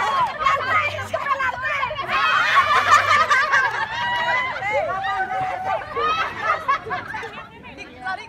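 A group of women laugh outdoors.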